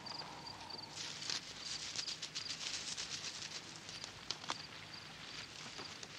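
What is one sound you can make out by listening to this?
A stone scrapes as grain is ground by hand.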